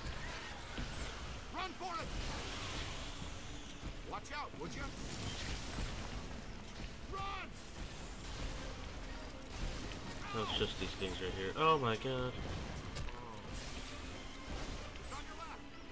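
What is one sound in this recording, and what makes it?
Energy blasts burst with a rumbling boom.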